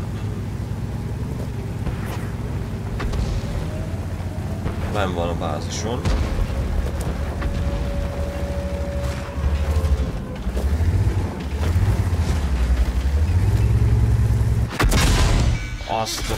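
A tank engine rumbles and roars steadily.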